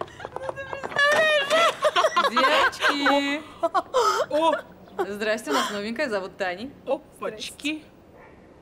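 A young woman calls out loudly in greeting.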